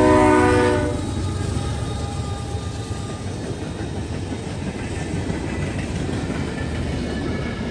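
Freight cars clatter and rumble over the rails.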